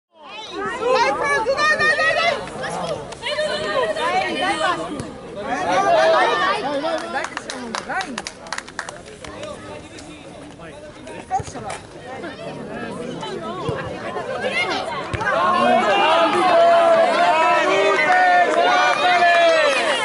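Young boys shout and call out to each other across an open field.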